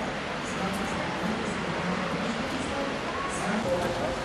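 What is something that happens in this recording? A woman talks calmly at a distance outdoors.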